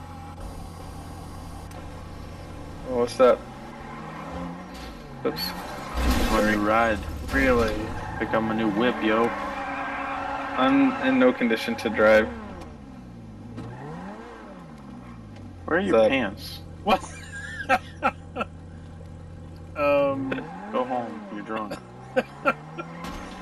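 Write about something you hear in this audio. A car engine idles and revs loudly.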